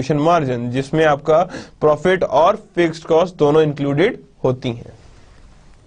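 A man speaks calmly and clearly into a close microphone, lecturing.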